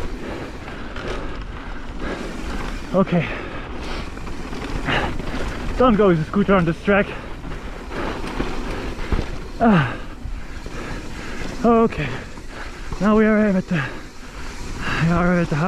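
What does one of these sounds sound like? Bicycle tyres crunch and rattle steadily over a dirt trail.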